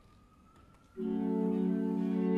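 A string ensemble begins to play.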